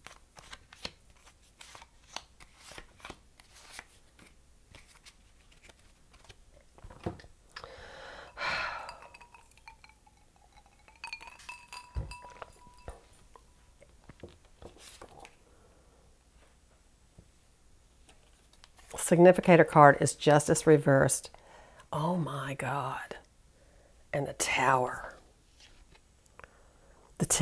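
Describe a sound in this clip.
Playing cards shuffle and slide onto a cloth-covered table.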